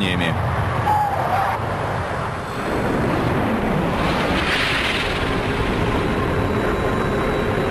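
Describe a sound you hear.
A jet airliner's engines roar loudly.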